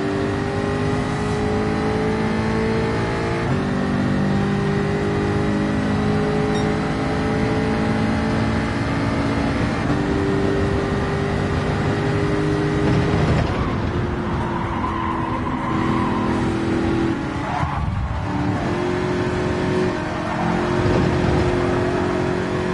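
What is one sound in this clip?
A racing car engine roars at high revs, its pitch shifting as gears change.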